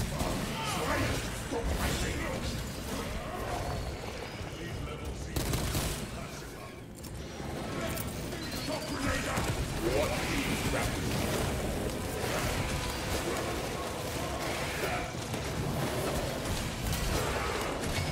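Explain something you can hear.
Heavy metal weapons clash and smash in combat.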